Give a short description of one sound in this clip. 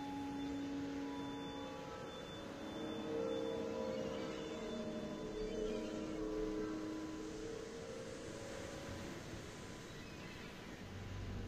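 Soft, gentle music plays.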